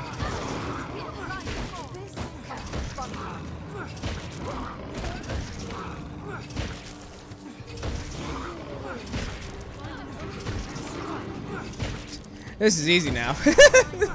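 A blade clashes and strikes in a fight.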